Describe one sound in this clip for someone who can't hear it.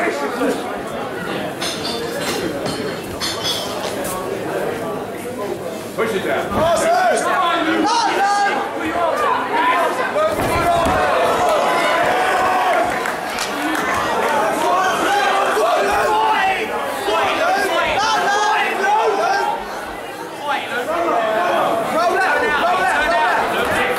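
Bodies thud and scuff on a padded mat as two men grapple.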